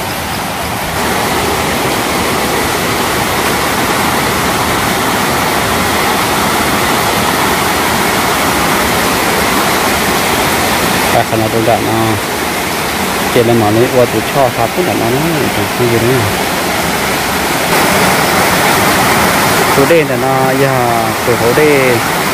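A stream rushes and splashes over rocks nearby.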